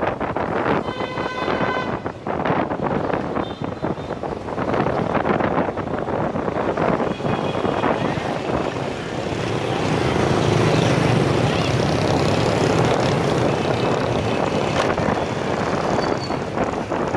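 Many motorbike engines hum and buzz along a busy street.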